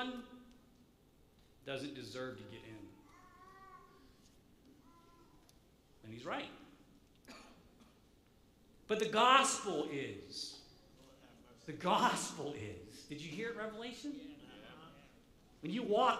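A middle-aged man speaks with animation into a microphone, in a reverberant hall.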